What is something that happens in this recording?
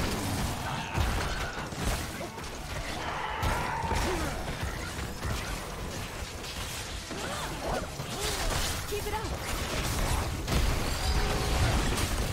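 Game battle effects clash and crackle with bursts of magic and impacts.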